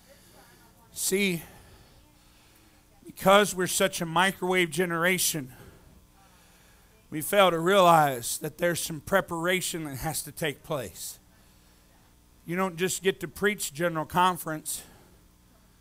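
A man preaches loudly through a microphone in an echoing hall, in bursts with pauses.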